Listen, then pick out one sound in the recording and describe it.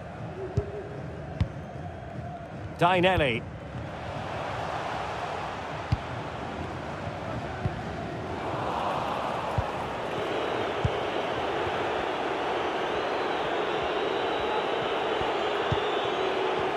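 A football thuds off a boot on grass.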